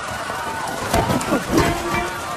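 An object thuds against the ground.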